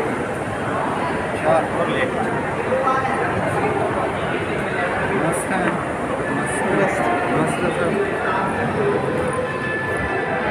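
A crowd murmurs and chatters all around, echoing in a large hall.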